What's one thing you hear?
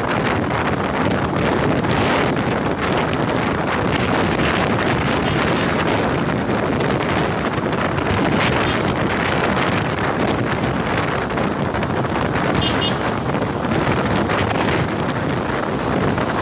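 Tyres hiss on a wet road as traffic passes.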